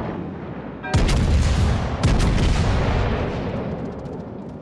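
Heavy naval guns fire with deep booming blasts.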